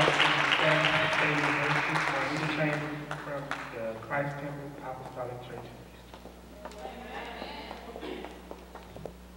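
A man speaks into a microphone, heard over loudspeakers in a large echoing hall.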